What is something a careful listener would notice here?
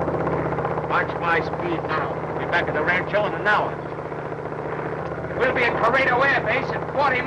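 A man talks over the drone of an airplane engine.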